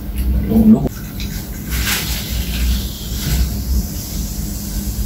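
A drink fizzes as it is poured from a can into a glass.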